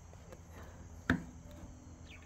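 A metal latch clicks.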